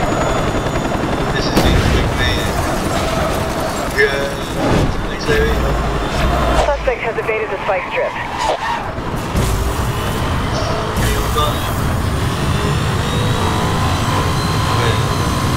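A sports car engine roars loudly at high speed.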